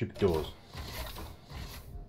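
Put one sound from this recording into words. A sliding door slides open.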